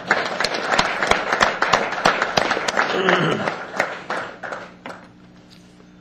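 A crowd applauds in a large room.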